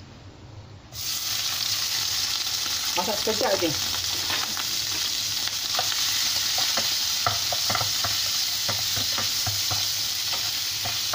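Shrimp sizzle loudly in hot oil.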